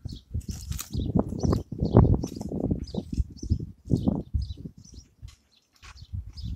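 A spade chops and scrapes into soil and roots.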